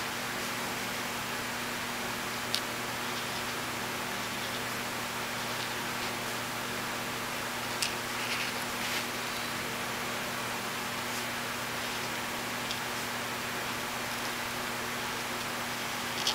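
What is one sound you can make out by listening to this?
A felt-tip marker squeaks and scratches softly on paper.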